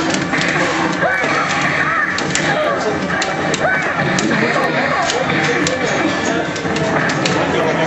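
Arcade game music plays loudly.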